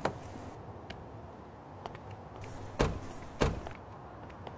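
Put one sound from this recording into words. Car doors open and slam shut.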